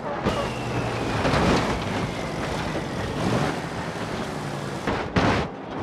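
Metal crunches and scrapes as a truck crashes and tumbles.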